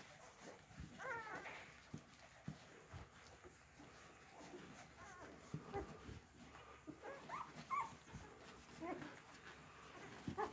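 Newborn puppies squeak and whimper close by.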